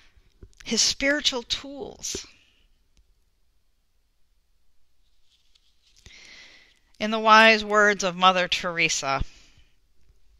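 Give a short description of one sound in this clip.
A woman speaks calmly into a headset microphone.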